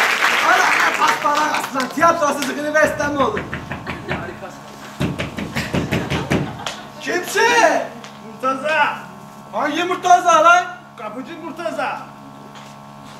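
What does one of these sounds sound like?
A man speaks loudly and theatrically in a large echoing hall.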